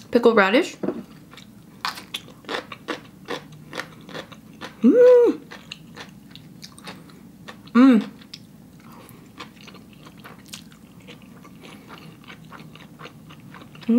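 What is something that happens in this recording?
A young woman slurps and chews noodles close to a microphone.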